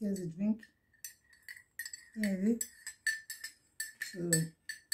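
A spoon clinks against a mug.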